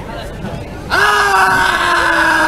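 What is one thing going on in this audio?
A young man shouts loudly close by.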